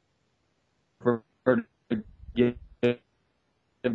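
A middle-aged man speaks in short bursts close to a microphone.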